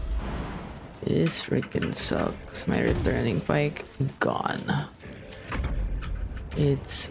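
A young person talks with animation into a close microphone.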